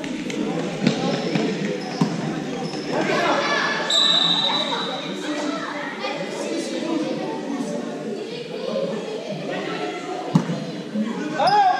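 Children shout and call out across a large echoing hall.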